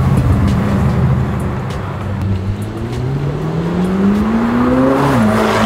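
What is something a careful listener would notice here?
A sports car engine rumbles loudly and revs up.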